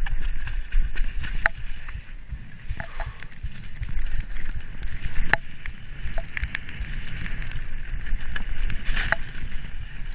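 Wind rushes past a small microphone.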